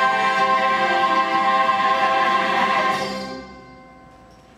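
A group of people sing a held chord together.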